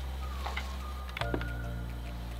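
A lamp switch clicks.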